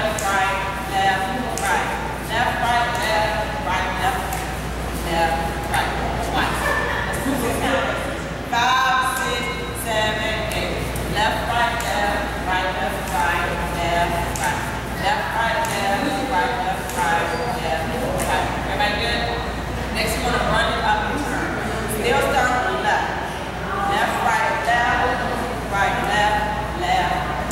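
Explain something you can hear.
A woman calls out instructions.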